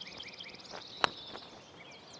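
A golf club taps a ball with a short click.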